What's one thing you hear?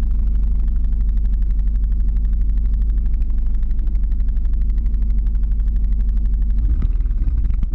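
Wheels roll steadily over rough asphalt with a low rumble.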